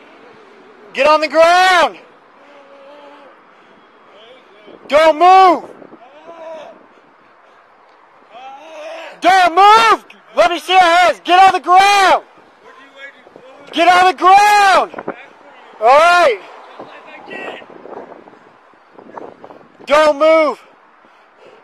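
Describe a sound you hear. A man shouts commands loudly, very close by.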